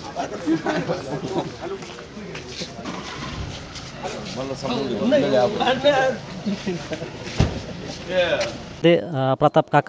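Several men talk and greet each other outdoors.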